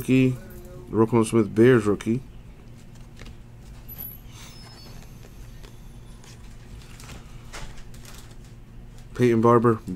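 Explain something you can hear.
Cardboard trading cards rustle and slide as hands flip through them.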